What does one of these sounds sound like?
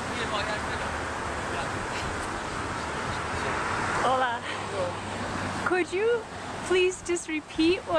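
A woman laughs nearby.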